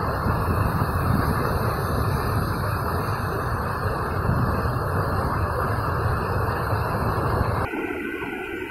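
Water rushes steadily along a channel.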